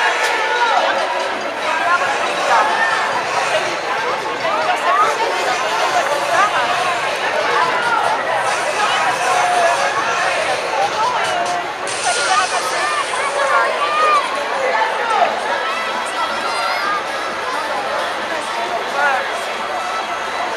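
A crowd of men, women and children chatters and calls out outdoors.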